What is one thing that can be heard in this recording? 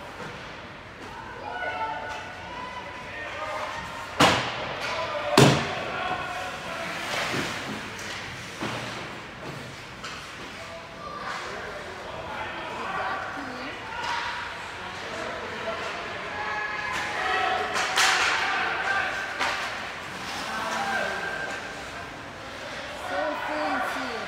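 Skates scrape and carve across the ice.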